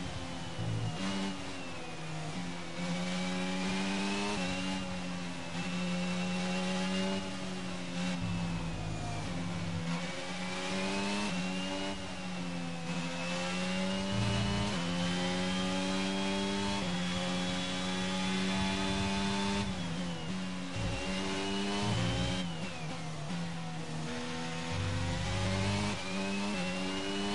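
A racing car engine screams close by, its pitch climbing through the gears and dropping when it slows down.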